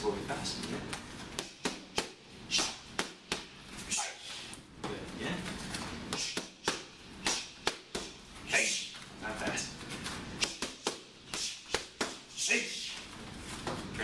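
A man breathes out hard with each strike.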